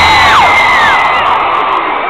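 A young woman sings into a microphone over loudspeakers.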